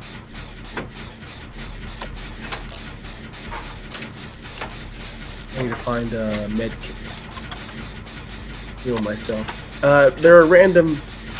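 Metal parts of a machine rattle and click as it is being repaired.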